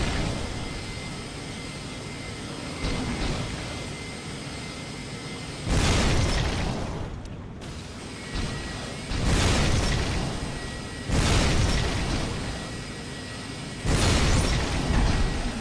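Laser beams buzz and crackle steadily.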